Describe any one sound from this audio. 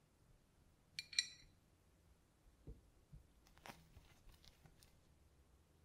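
Metal parts clink and click as they are fitted together.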